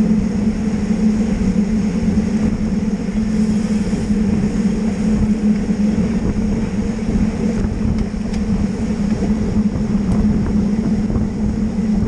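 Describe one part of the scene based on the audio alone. Wind rushes loudly past, buffeting steadily throughout.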